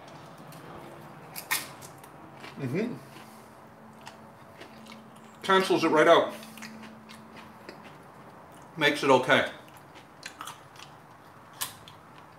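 Crunchy food crackles as a man eats.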